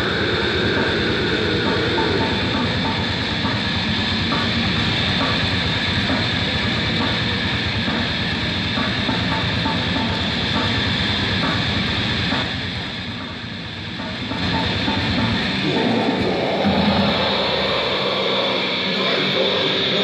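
Drums pound in a steady beat.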